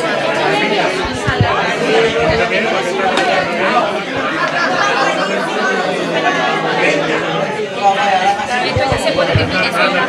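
Several people talk at once.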